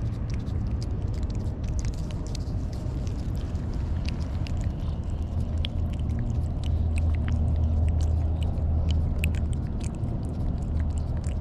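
A cat licks and smacks at a paste treat up close.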